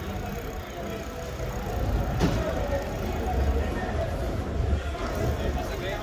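Men and women talk faintly in the street nearby.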